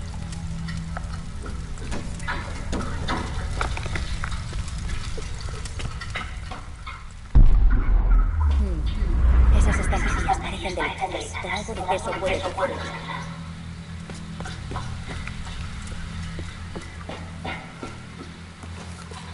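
Footsteps run over a hard floor.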